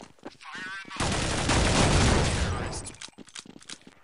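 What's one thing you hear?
A shotgun fires with a loud boom that slowly dies away.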